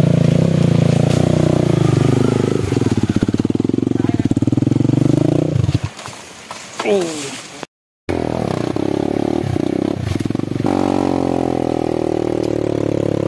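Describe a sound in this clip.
A dirt bike engine revs and putters loudly close by.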